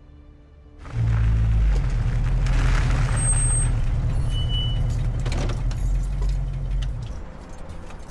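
A car engine rumbles loudly at idle.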